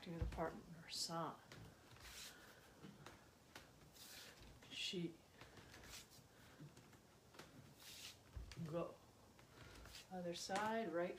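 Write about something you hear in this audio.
Bare feet thump and slide on a wooden floor.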